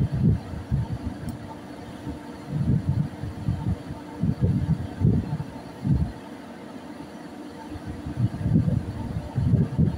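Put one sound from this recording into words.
Wind gusts rumble against the microphone outdoors.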